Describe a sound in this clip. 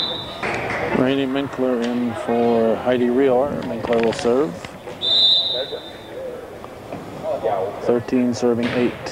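Young girls shout calls to each other on the court.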